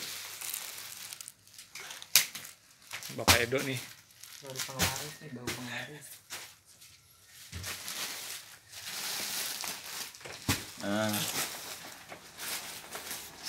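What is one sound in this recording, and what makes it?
Plastic-wrapped packages rustle and crinkle as they are handled.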